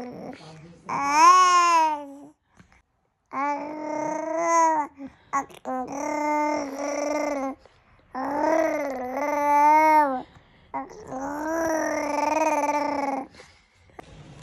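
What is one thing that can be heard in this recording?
A baby cries and whimpers close by.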